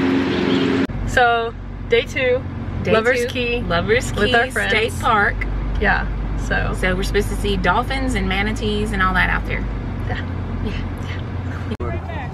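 A middle-aged woman talks cheerfully close by.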